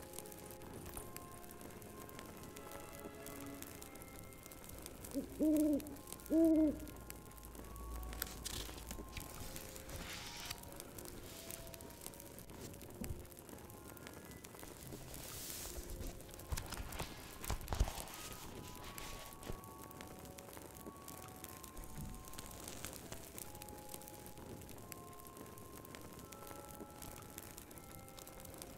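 A fire crackles softly in a fireplace.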